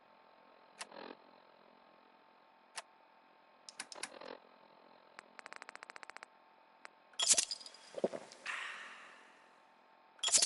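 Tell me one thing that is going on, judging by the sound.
Short electronic clicks and beeps tick as a menu is scrolled.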